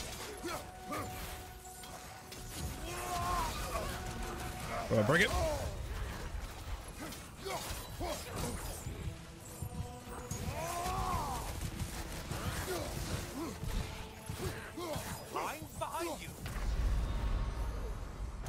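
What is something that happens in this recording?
Blades clash and blows land in a fierce fight.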